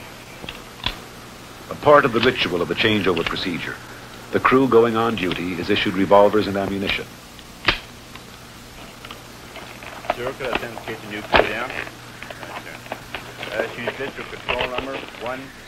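Small metal parts click as hands handle a device.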